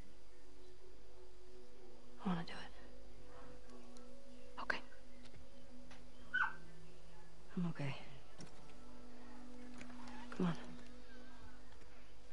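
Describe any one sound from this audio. A second young woman answers softly, close by.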